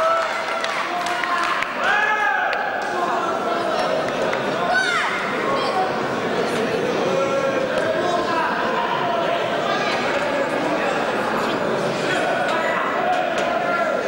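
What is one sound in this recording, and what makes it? A crowd of spectators chatters loudly in a large echoing hall.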